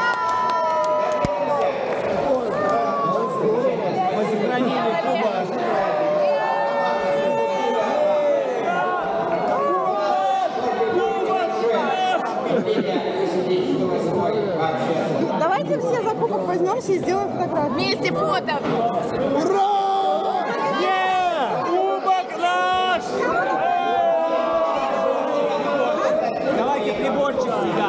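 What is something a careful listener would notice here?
A large crowd of men and women cheers and calls out loudly in a big echoing hall.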